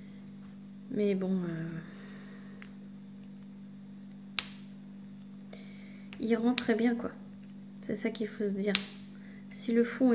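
Small plastic beads click and rattle softly in a tray.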